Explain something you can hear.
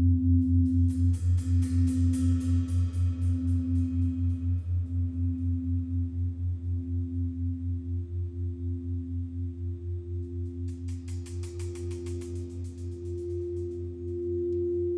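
A gong shimmers and hisses brightly as it is rubbed with a mallet.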